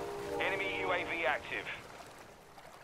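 Seagulls cry overhead.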